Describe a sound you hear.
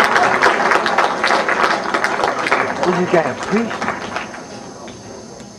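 An audience claps and applauds, then the applause fades.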